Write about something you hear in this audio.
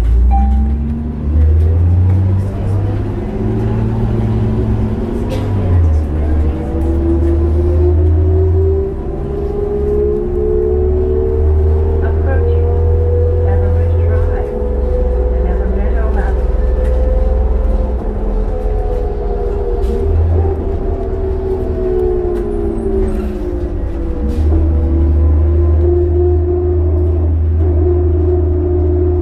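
A bus engine hums and whines steadily, rising and falling in pitch.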